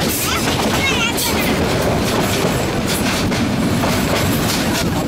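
A metre-gauge passenger train rolls along the track, heard from an open window.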